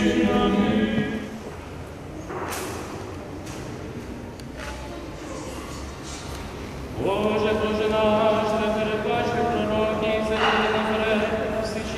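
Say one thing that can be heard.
A man chants a prayer in a steady sung voice in a large echoing hall.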